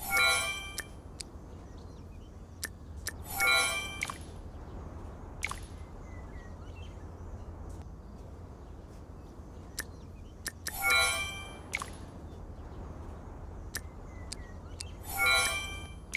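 Bright game chimes ring out as menu buttons are tapped.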